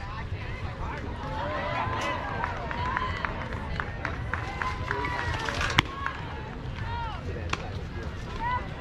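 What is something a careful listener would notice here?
Young players call out across an open field.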